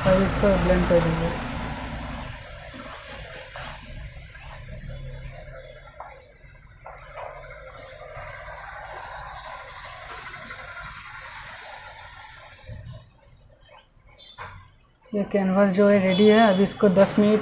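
A paintbrush swishes softly across a board.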